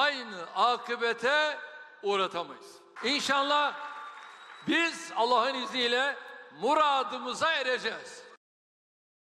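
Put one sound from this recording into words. An elderly man speaks forcefully into a microphone to a large hall.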